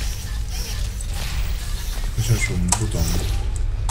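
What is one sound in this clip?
A portal gun fires with a short electronic zap.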